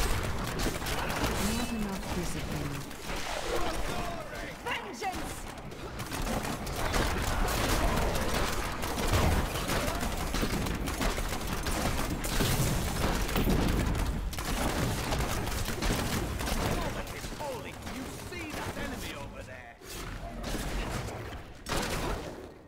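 Magic blasts crackle and explode in rapid bursts.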